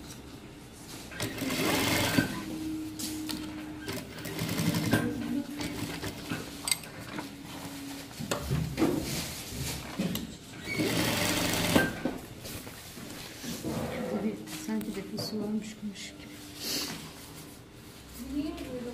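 Fabric rustles as hands slide it along.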